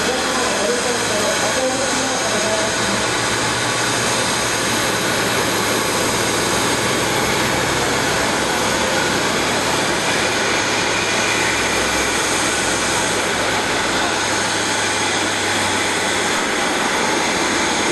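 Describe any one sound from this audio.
Jet engines roar and whine steadily nearby.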